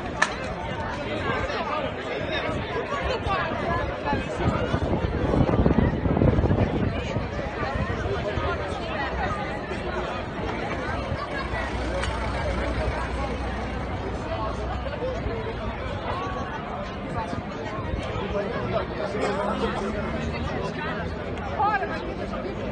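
A crowd of men and women chatters and murmurs outdoors nearby.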